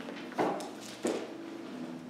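Pages rustle as a man turns them.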